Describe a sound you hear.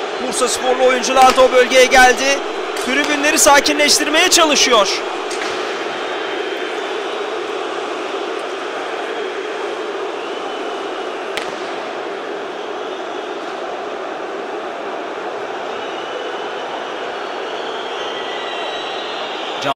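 A large crowd murmurs and cheers in a stadium.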